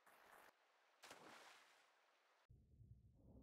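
Water splashes loudly as a diver plunges in.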